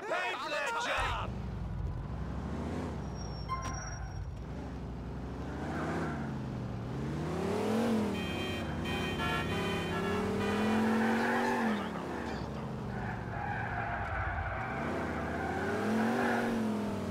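A large engine starts and revs as a vehicle drives off.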